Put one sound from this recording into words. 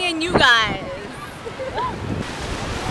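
A young woman laughs close up.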